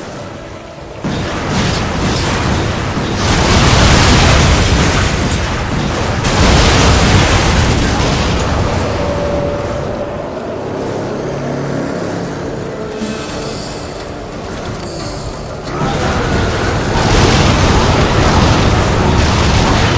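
Guns fire rapid shots.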